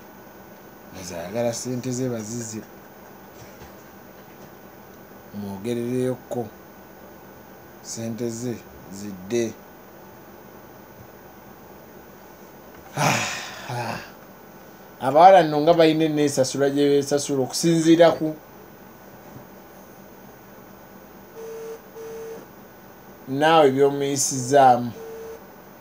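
A young man speaks into a microphone close up, calmly, in short bursts with pauses.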